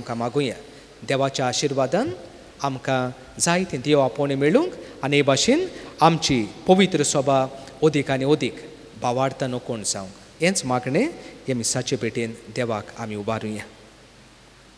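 A middle-aged man speaks calmly into a microphone in an echoing hall.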